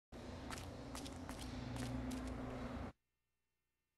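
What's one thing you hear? Footsteps with clinking armour tread on a stone floor.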